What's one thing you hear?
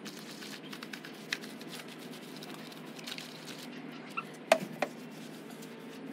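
A brush scrubs a wheel.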